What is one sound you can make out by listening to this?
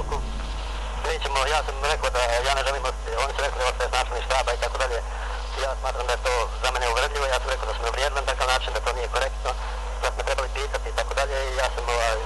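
A man speaks calmly over a phone line.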